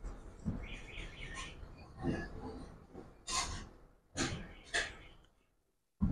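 A bowl clinks against a plate.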